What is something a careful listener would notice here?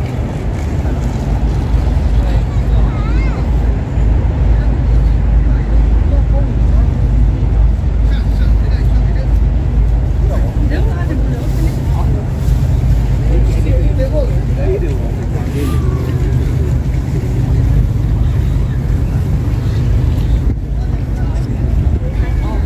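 Wind blusters outdoors in the rain.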